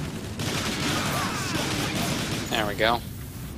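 Explosions rumble and crackle nearby.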